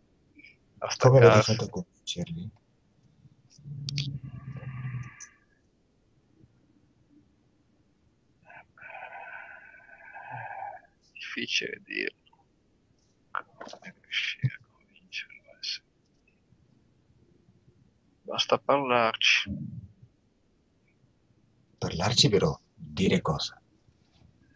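A man speaks with animation over an online call, pausing now and then.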